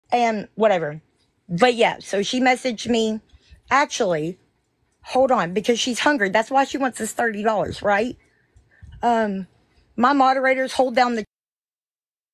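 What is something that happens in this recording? A woman talks with animation into a phone microphone.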